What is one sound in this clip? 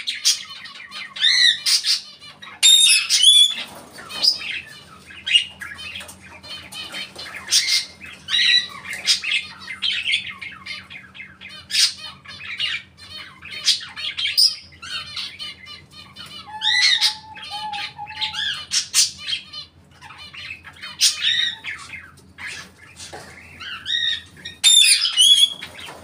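A parrot chirps, whistles and squawks in sharp bursts close by.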